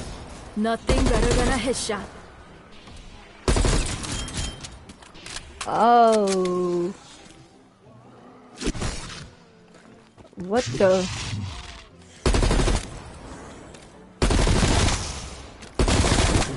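Rapid gunfire bursts loudly in short volleys.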